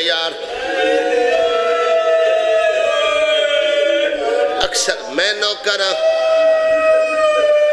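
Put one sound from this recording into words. A man sings a long, wavering chant loudly into a microphone.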